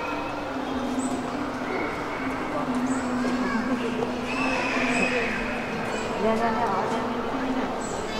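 Visitors murmur and chatter nearby in a large echoing hall.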